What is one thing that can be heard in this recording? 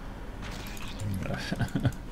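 A man talks casually close to a microphone.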